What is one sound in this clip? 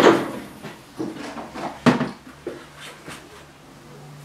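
Metal parts clink and rattle in a metal tray.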